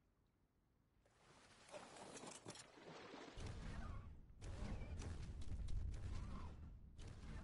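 Splashing water and rushing wind sound as a large creature moves.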